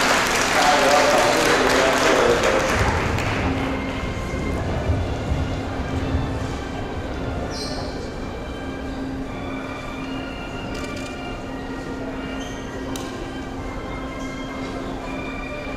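A seated crowd murmurs and chatters in a large echoing hall.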